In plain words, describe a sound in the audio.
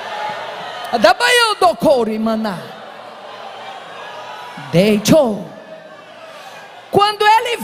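A woman preaches with passion through a microphone, her voice echoing in a large hall.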